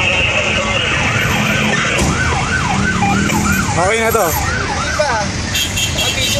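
Sirens wail up and down close by.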